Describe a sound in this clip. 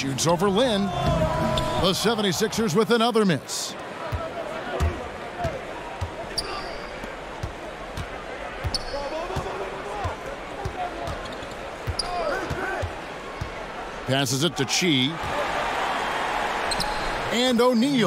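A large crowd cheers and roars in a big arena.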